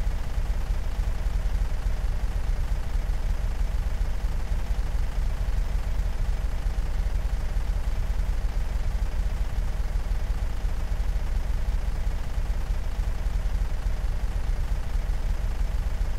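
A car engine hums steadily at a low pitch.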